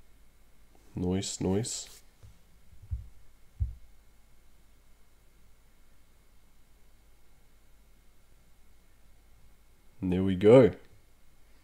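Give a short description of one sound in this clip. A young man speaks briefly into a close microphone, with animation.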